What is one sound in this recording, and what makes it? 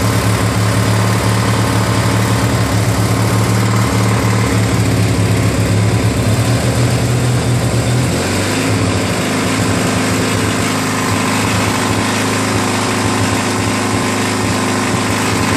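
A small engine runs loudly with a steady, throbbing drone.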